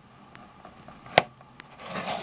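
A plastic case clicks and taps as it is handled.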